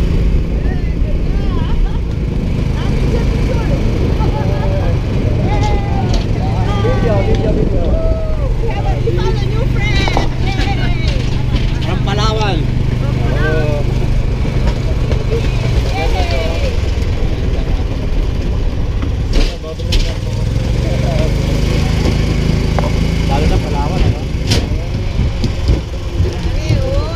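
An electric cart hums steadily as it rolls along.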